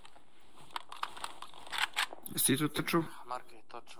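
A soldier crawls and scrapes across a concrete floor.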